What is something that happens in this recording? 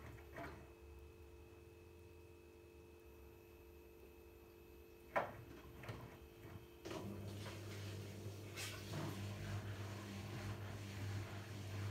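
Wet laundry tumbles and thuds inside a washing machine drum.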